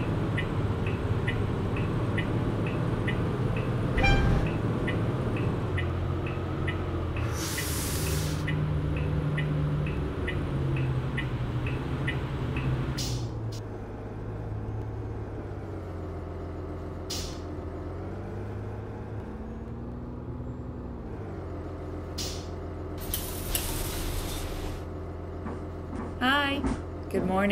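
An articulated city bus engine hums as the bus drives and slows to a stop.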